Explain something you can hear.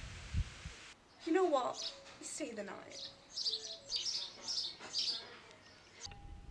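A young woman speaks nearby with animation.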